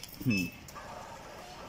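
A card machine beeps.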